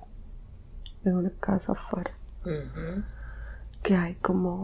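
A young woman snores loudly, close by.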